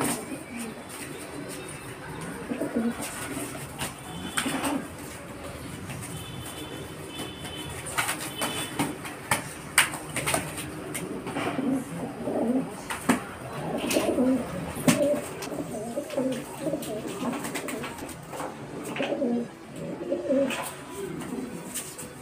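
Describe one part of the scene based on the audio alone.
Pigeons coo and grunt at close range.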